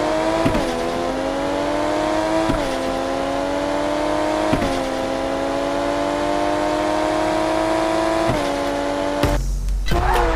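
A game car engine revs high, shifting gears up as it speeds along.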